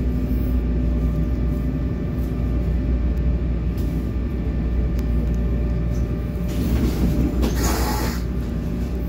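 A train rumbles steadily as it rolls slowly along, heard from inside a carriage.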